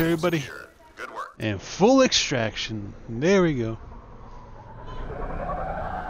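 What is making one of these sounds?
A spaceship's engines rumble and whoosh as it flies past.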